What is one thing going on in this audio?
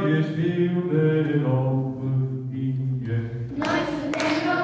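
Adult voices sing slowly together.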